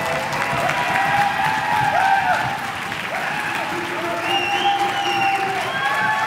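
A crowd claps along in a large echoing hall.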